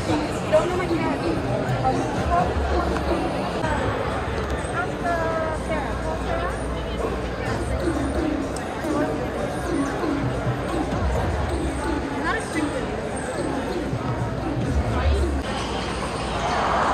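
A crowd of men and women chatters in the open air nearby.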